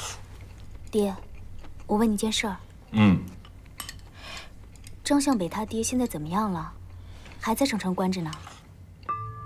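A young woman speaks anxiously, asking questions.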